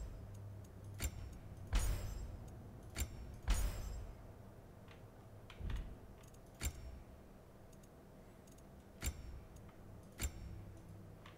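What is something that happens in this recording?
Short menu clicks and chimes sound now and then.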